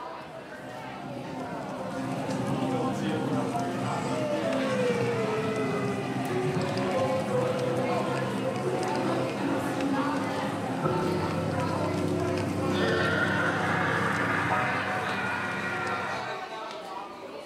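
A live band plays amplified music loudly, then stops.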